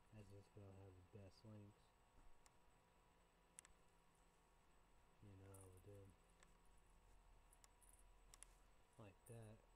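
A man speaks calmly and quietly close by, in short bursts with pauses.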